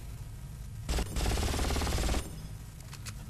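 A heavy gun fires a rapid, loud burst.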